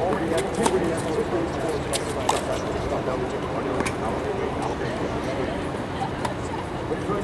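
A tennis ball bounces with sharp pops on a hard court.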